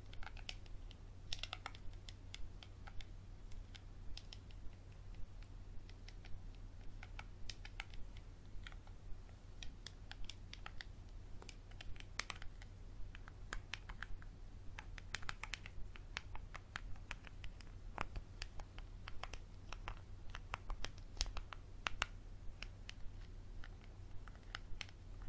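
Small objects click and tap softly close by.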